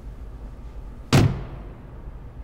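A car door slams shut nearby.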